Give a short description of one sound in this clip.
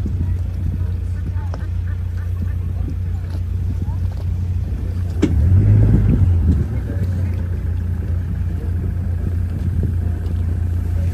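A boat's motor rumbles steadily on the water.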